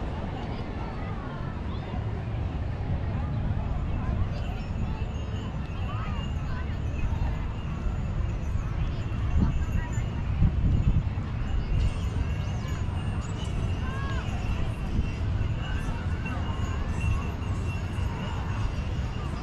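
Seagulls call overhead.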